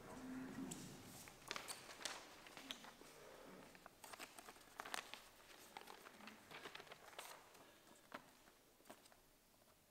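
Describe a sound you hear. Sheets of paper rustle in a man's hands.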